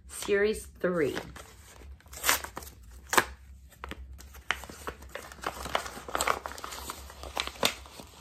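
A foil packet crackles as a woman handles and tears it.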